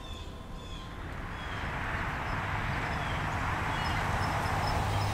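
A truck approaches along a road, its engine and tyres growing louder.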